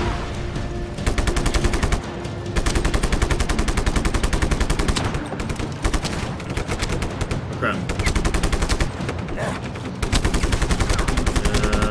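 Rapid automatic gunfire rattles in long bursts.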